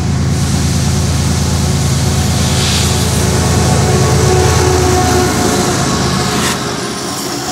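A diesel locomotive engine roars loudly close by and passes.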